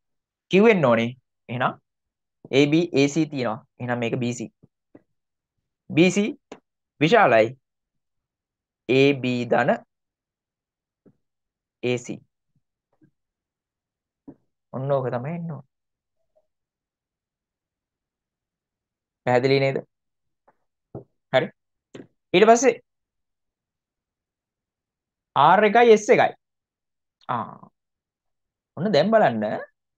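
A young man speaks calmly in short phrases through a microphone, with pauses.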